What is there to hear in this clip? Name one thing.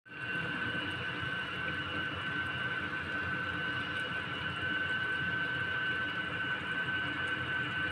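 Food sizzles and bubbles steadily in a pot.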